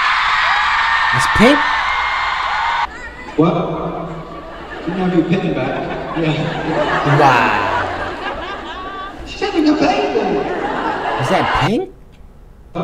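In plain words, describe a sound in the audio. A crowd cheers loudly at a concert, heard through a small speaker.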